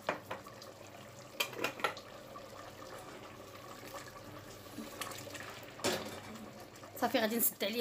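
A metal pot scrapes and clanks on a stove.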